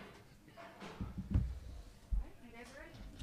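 A chair creaks and thumps.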